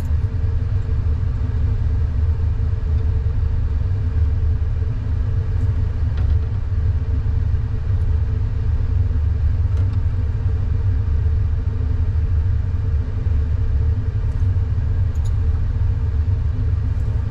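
Metal tweezers tap and scrape against a metal tray.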